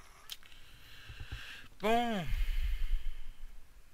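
A wooden chest breaks apart with a short crunching knock.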